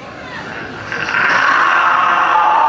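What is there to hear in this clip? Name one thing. A band starts playing loud, fast music.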